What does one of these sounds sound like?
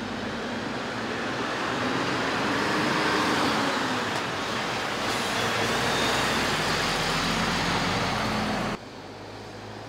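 A truck engine rumbles as the truck drives slowly past.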